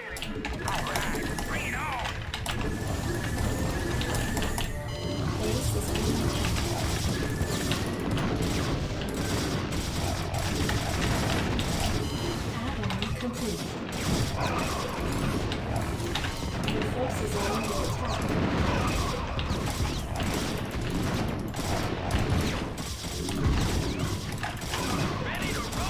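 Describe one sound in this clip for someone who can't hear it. Guns fire rapidly in a battle.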